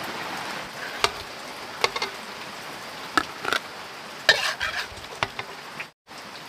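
A metal spatula scrapes and knocks against a wok.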